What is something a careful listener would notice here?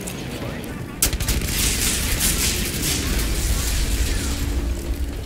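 Sparks crackle and hiss.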